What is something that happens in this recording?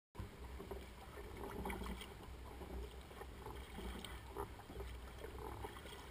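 Water laps against a kayak's hull.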